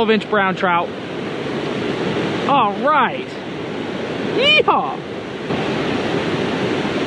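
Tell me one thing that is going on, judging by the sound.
Water of a river flows and rushes steadily nearby.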